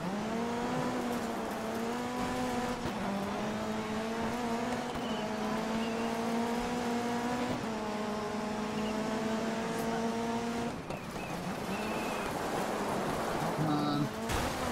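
Tyres skid and scatter over loose gravel.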